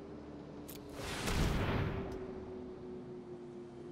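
A magical whooshing sound effect swells and fades.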